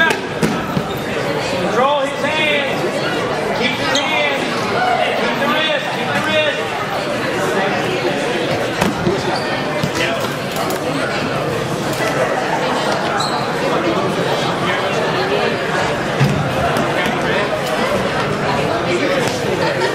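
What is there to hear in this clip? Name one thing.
A crowd of spectators shouts and cheers in an echoing hall.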